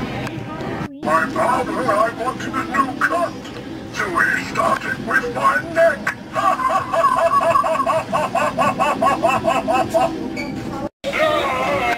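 An animatronic figure cackles and talks in a spooky, distorted voice through a small loudspeaker.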